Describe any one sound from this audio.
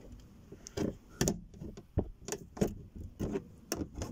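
A screwdriver clicks against plastic.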